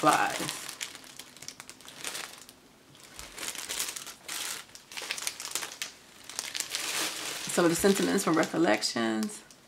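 Plastic packaging crinkles and rustles in someone's hands.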